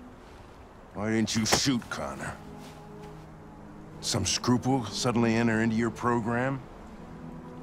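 An older man speaks in a gruff, low voice.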